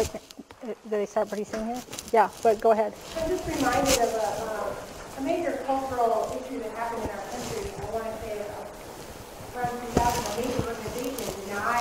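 A middle-aged woman speaks with animation in a large echoing hall.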